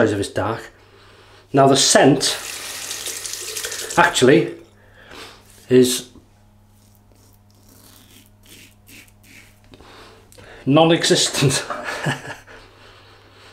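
A razor scrapes over stubble.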